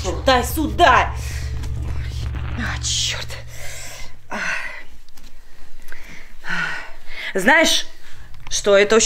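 A young woman speaks with emotion, close by.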